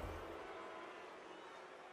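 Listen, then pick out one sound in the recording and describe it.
Ice skates scrape across ice.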